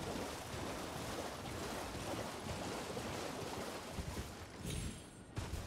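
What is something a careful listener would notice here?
A horse splashes quickly through shallow water.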